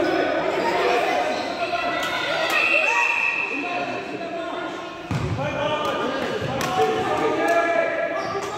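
Young children shout and chatter excitedly, echoing in a large hall.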